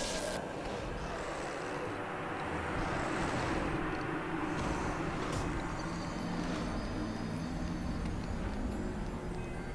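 A low, deep drone of music plays after the fight.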